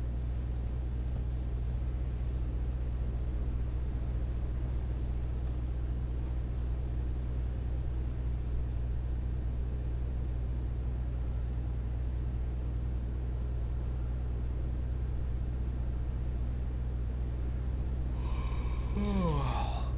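A truck engine drones steadily at low pitch.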